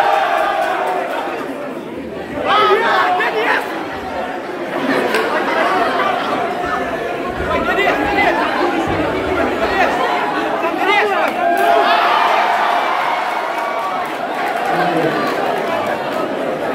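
A crowd chatters and cheers loudly in an echoing hall.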